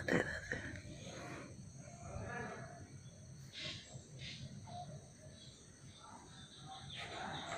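A baby coos and babbles softly close by.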